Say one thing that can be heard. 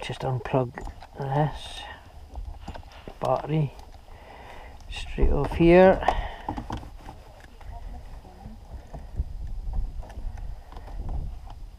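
Plastic connectors click and rattle as they are pulled and pushed.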